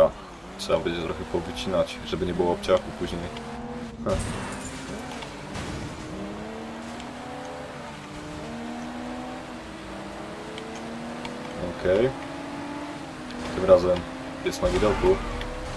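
A car engine revs and roars, shifting up and down in pitch.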